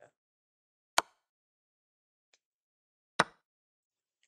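A chess piece clacks sharply onto a board.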